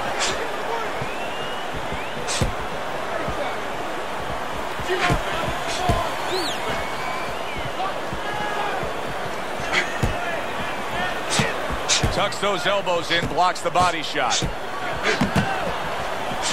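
Punches thud against a boxer's body and gloves.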